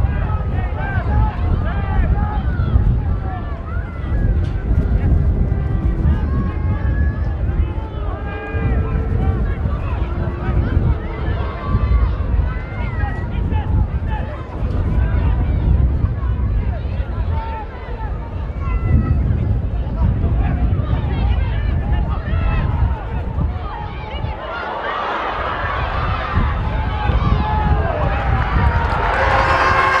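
A large crowd murmurs outdoors in a stadium.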